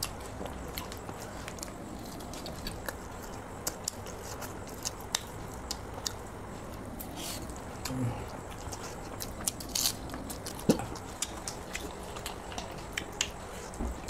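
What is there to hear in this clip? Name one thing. Two young men eat with their hands, with soft wet clicks of rice and curry.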